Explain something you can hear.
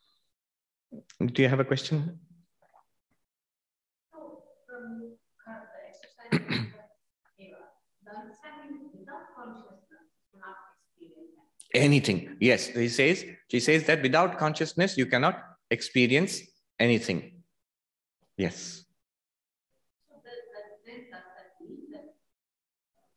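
A man speaks calmly into a microphone, sometimes with animation.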